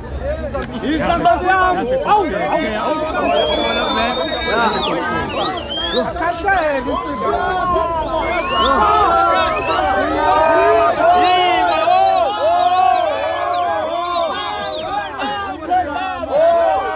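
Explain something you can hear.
A crowd of men and women sings and chants loudly nearby.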